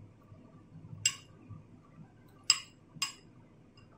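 A metal spoon clinks against a ceramic bowl.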